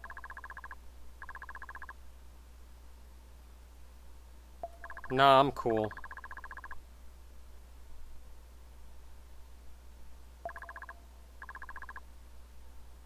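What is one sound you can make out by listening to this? Quick electronic blips chatter in short bursts as dialogue text types out.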